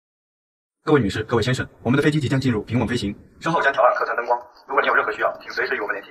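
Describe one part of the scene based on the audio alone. A young man speaks over an aircraft loudspeaker.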